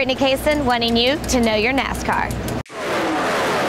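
A young woman speaks brightly and clearly, close to a microphone.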